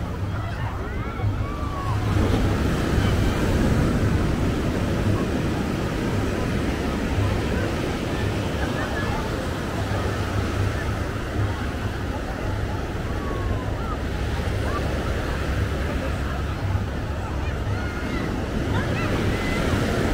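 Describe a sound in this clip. Waves break and wash up on a beach nearby.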